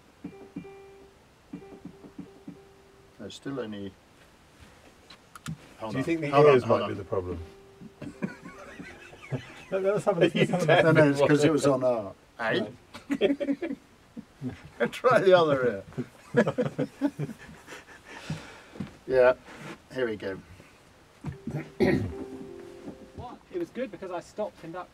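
Piano keys play short notes.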